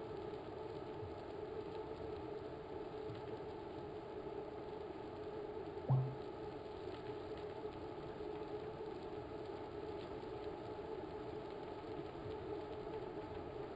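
A bike trainer whirs steadily.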